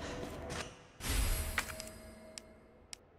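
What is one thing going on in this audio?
A short chime sounds as an item is picked up.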